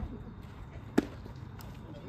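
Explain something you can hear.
A baseball smacks into a leather glove.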